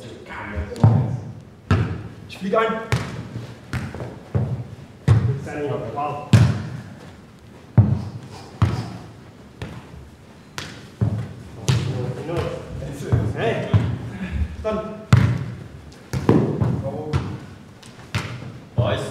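A ball thuds sharply off feet and bounces on a hard floor.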